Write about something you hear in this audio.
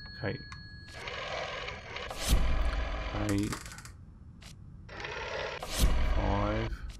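A rotary phone dial is turned and whirs as it spins back.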